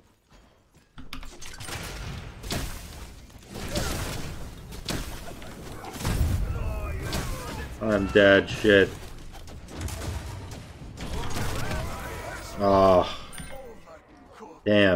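Fighting sound effects from a video game clash and whoosh.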